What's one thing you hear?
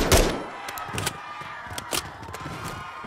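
A rifle clicks as it is reloaded.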